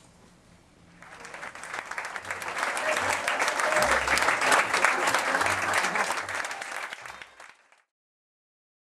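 An audience applauds loudly and cheers.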